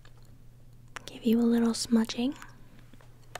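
A woman speaks softly, close to the microphone.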